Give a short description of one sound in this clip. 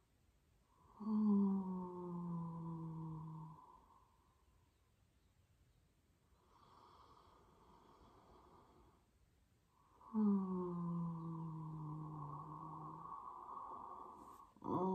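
A woman chants a long, low hum close by, sliding slightly down in pitch.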